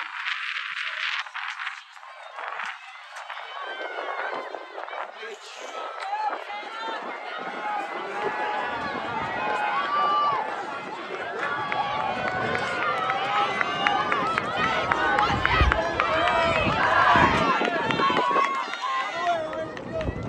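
A crowd of spectators cheers and shouts outdoors, growing louder as runners pass.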